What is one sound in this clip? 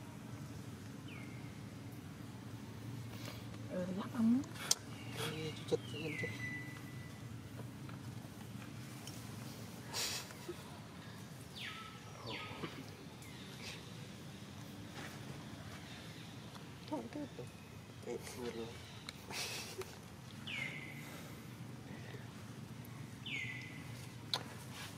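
A baby monkey squeaks close by.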